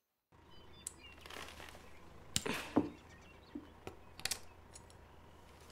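Small metal parts click and clink together in a person's hands.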